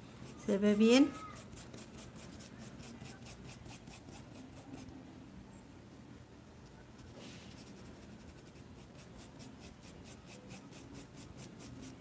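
A brush dabs softly and rapidly on cloth.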